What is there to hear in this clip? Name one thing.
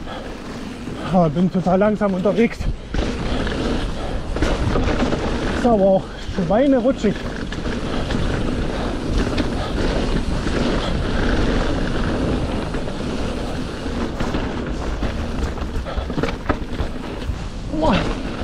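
Bicycle tyres roll and crunch over dirt and dry leaves.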